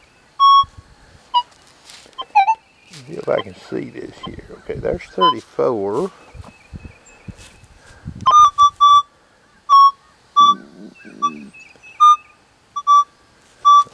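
A metal detector gives short, high beeps as its coil sweeps over a target.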